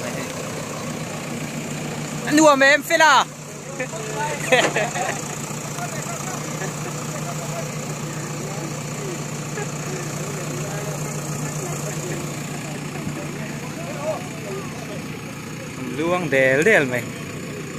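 A diesel engine idles steadily nearby.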